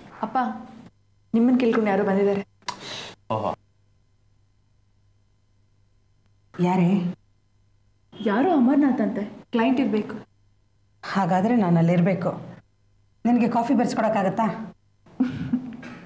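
A middle-aged woman speaks with feeling in a quiet room.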